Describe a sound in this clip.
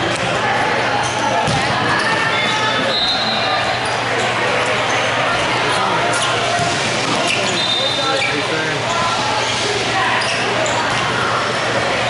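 A ball thuds off a foot.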